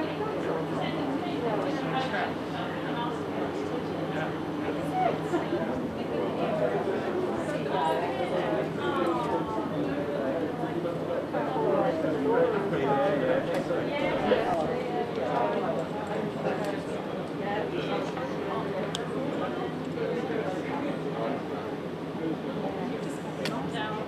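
A crowd of men and women murmur and chat quietly outdoors.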